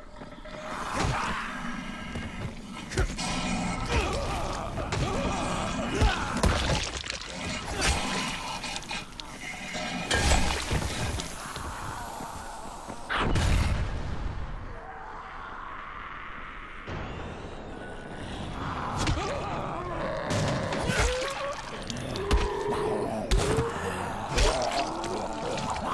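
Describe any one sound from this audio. Heavy blows thud against bodies again and again.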